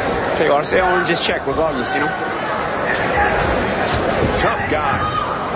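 A crowd murmurs and cheers in a large arena.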